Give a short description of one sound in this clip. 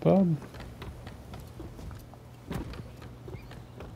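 Footsteps patter on a tiled roof.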